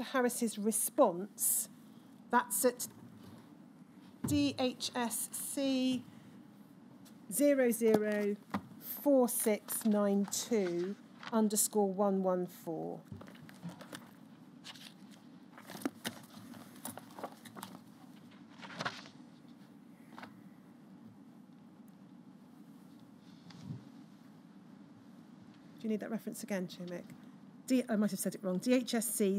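A woman speaks calmly and clearly through a microphone.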